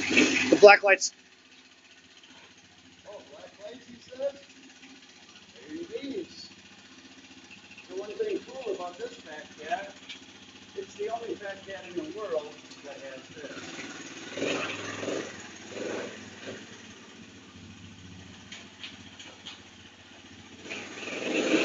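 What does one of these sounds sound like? A single-cylinder four-stroke three-wheeler engine idles.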